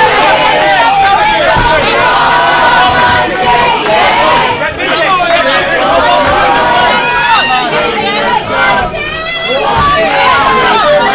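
A crowd shouts and cheers loudly in a large echoing hall.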